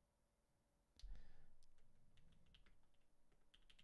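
A young man speaks quietly, close to a microphone.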